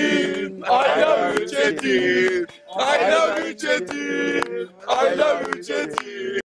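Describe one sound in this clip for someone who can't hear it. Men clap their hands in rhythm.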